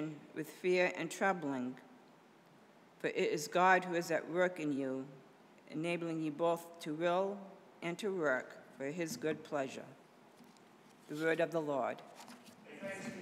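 A middle-aged woman reads out calmly through a microphone in an echoing room.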